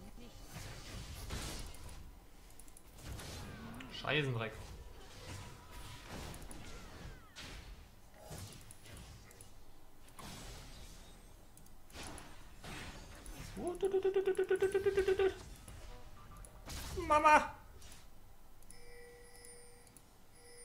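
Video game effects whoosh and clash.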